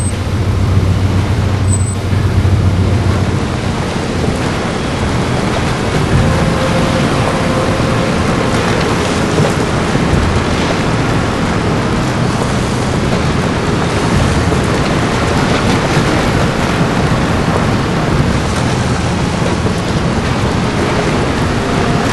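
An off-road vehicle's engine drones as it drives over a dirt track.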